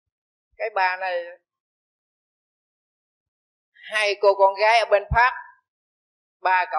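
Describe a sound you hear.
An elderly man speaks calmly and close by, with pauses between phrases.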